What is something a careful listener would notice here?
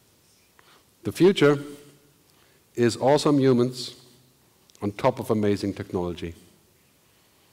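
A man speaks through a microphone in a large hall, in short bursts with pauses.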